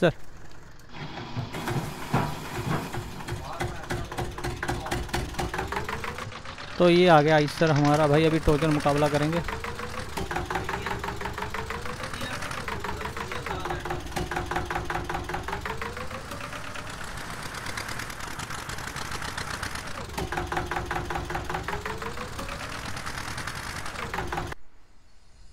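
A tractor engine chugs and revs up and down.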